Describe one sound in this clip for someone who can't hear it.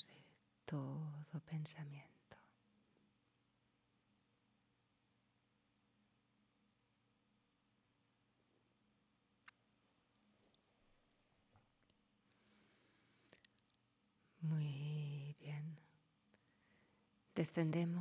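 A middle-aged woman speaks calmly, with long pauses, close to a microphone.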